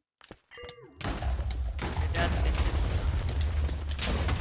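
A loud explosion booms and rumbles deeply.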